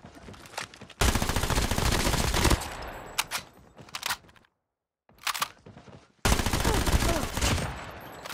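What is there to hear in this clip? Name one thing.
Rapid automatic gunfire rattles loudly.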